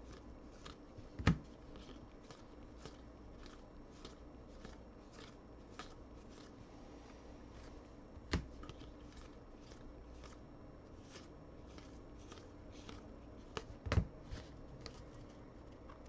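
Trading cards slide and snap softly as they are flipped one by one.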